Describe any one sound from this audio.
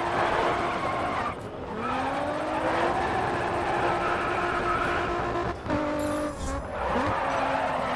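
Tyres screech loudly while sliding.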